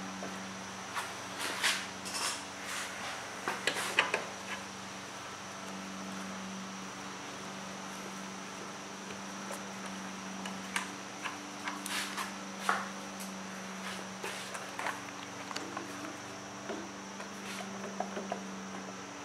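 A socket wrench clicks and knocks against metal.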